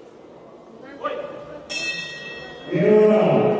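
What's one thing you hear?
A man shouts commands loudly.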